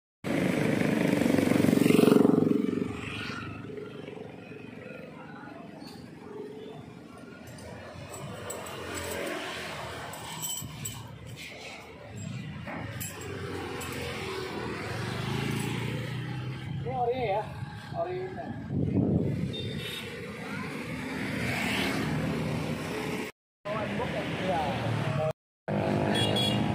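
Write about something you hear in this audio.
Traffic hums by outdoors.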